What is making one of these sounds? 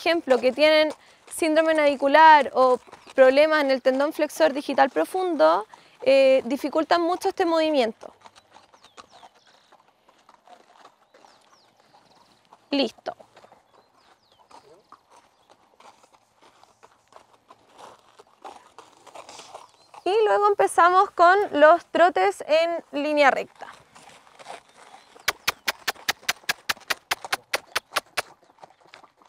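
A horse's hooves crunch slowly on a gravel path.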